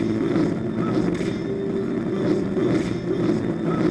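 A whip lashes through the air.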